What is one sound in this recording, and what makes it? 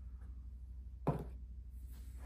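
A light object is set down on a wooden tabletop with a soft knock.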